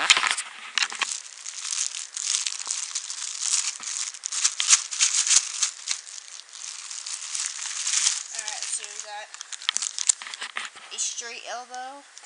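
A plastic bag crinkles and rustles as it is handled close by.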